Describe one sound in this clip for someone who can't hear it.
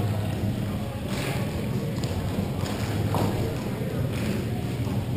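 Skate wheels rumble across a hard floor in a large echoing hall.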